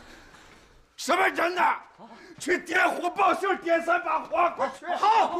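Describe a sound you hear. A man speaks urgently up close.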